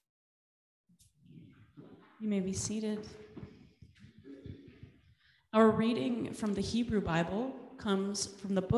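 A man reads aloud through a microphone in a reverberant hall.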